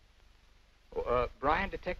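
A man speaks into a telephone.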